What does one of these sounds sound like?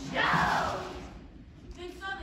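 An audience laughs and cheers loudly.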